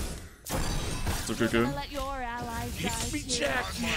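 Magic blasts crackle and whoosh during a fight.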